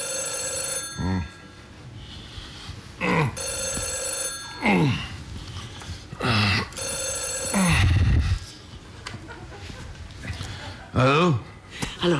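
A middle-aged man groans and speaks into a telephone.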